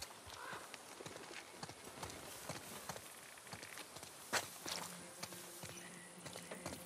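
Footsteps walk steadily on a wet path.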